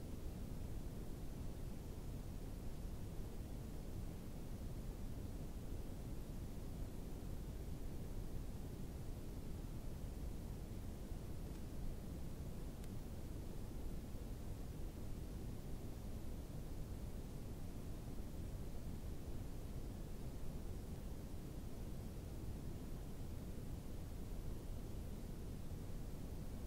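Wind blows steadily and rumbles outdoors.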